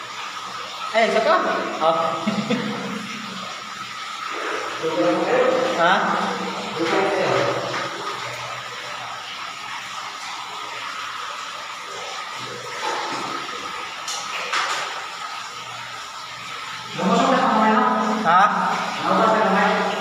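A man calls out from deep down a narrow, echoing well.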